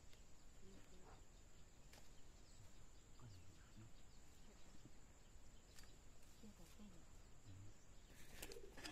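Hands pat and press loose soil.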